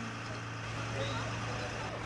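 A fire engine idles with a low steady rumble.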